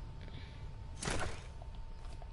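A wooden wall is put up with a short thud.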